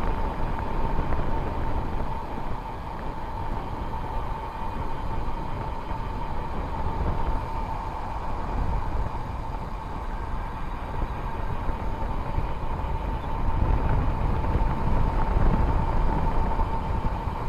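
A vehicle's engine whines steadily.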